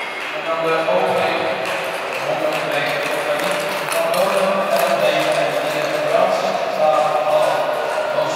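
Speed skates scrape and glide on ice.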